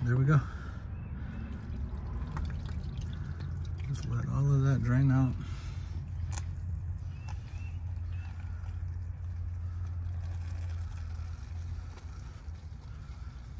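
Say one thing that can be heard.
Oil pours in a thin stream into a plastic pan.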